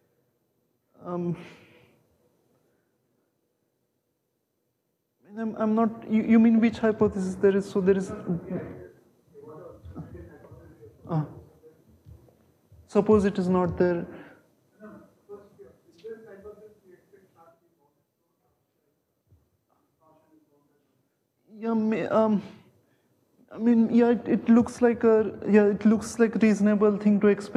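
A young man lectures with animation, pausing now and then between phrases.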